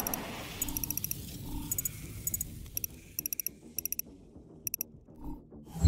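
Short electronic beeps tick in quick bursts.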